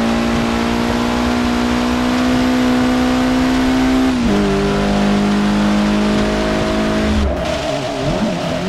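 A car engine drones steadily and drops in pitch as it shifts gear.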